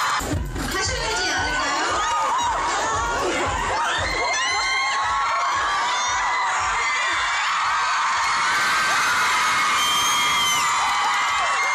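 A crowd of young women screams and shrieks loudly in a large hall.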